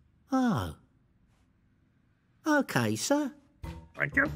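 A man speaks in a cartoon voice.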